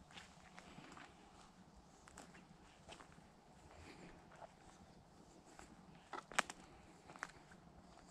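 Footsteps crunch and snap on dry twigs and forest litter.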